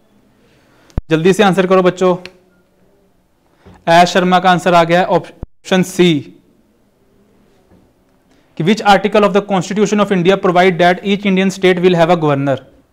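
A man speaks calmly into a clip-on microphone, close by.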